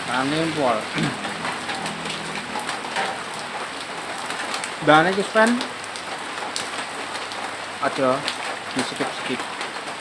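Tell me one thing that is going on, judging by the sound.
A man speaks calmly and close by in short bursts.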